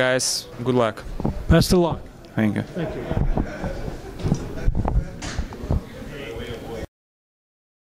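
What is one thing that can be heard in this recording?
A man answers calmly into a microphone.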